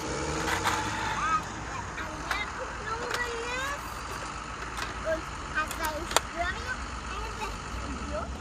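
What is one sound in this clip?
Plastic toys knock and clatter on concrete.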